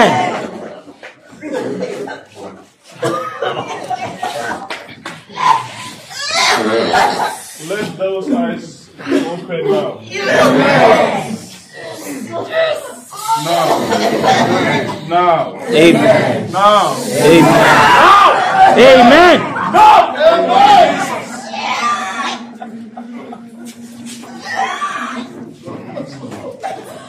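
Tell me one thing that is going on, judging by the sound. Several women and men pray aloud in a small room.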